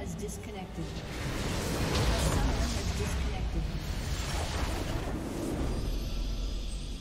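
A game structure explodes with a loud rumbling crash.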